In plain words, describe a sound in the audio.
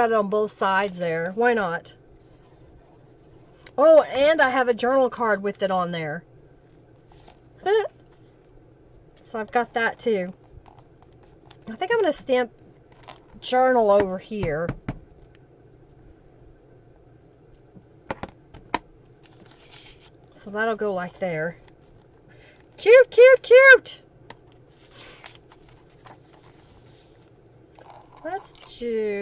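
A woman talks calmly into a close microphone, in short bursts with pauses.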